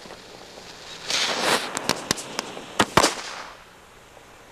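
A fountain firework hisses and roars.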